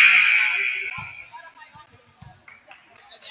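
A volleyball thuds as players hit it.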